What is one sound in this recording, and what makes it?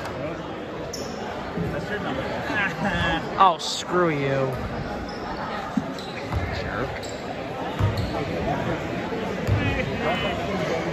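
A crowd murmurs and shouts in a large echoing gym.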